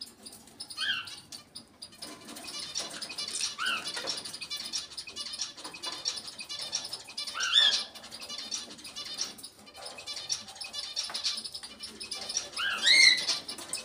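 A parrot whistles and squawks close by.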